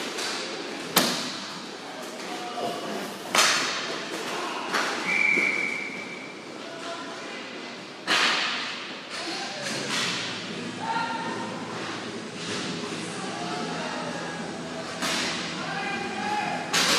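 Hockey sticks clack sharply in a large echoing hall.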